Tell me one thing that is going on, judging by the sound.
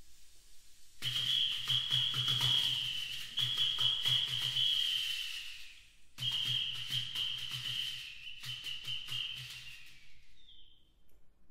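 A small hand-held percussion instrument is shaken rapidly, rattling with a bright ringing tone.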